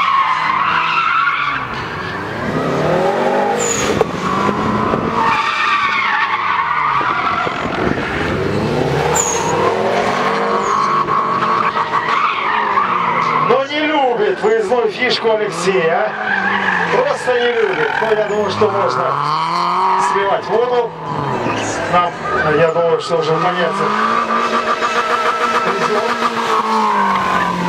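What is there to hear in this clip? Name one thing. A car engine revs hard, rising and falling in pitch again and again.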